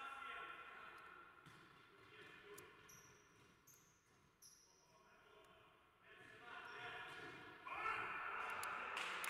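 A ball thuds when kicked.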